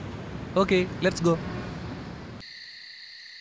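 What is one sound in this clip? Traffic hums along a busy street.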